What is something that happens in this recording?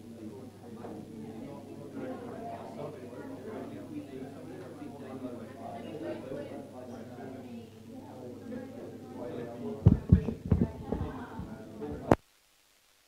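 A man speaks into a microphone through a loudspeaker.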